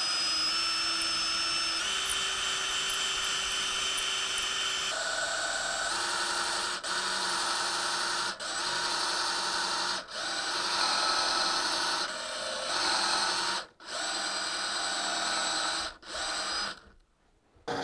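A cordless drill whines at high speed, with short pauses.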